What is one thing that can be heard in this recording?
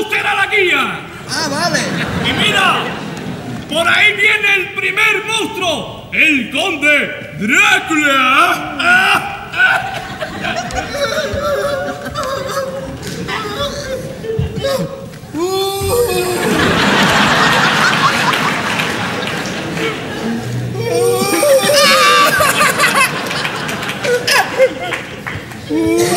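A man speaks with animation in a large hall.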